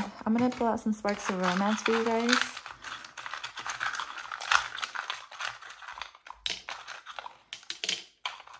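Wooden sticks rattle and clatter in a small box.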